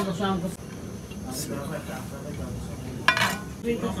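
A metal spoon scrapes rice across a clay plate.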